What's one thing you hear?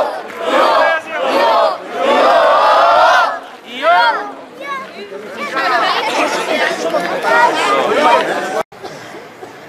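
A large crowd talks and calls out loudly in a big, echoing space.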